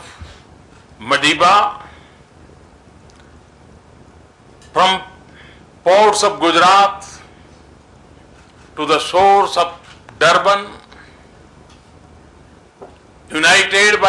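An elderly man speaks slowly and formally into a microphone, with long pauses.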